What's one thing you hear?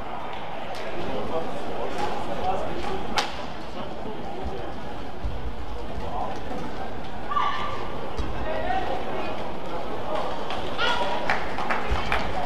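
Shoes squeak sharply on a court floor.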